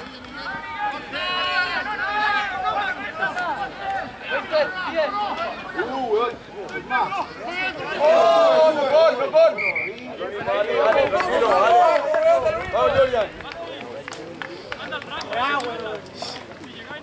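Spectators shout and cheer excitedly close by, outdoors.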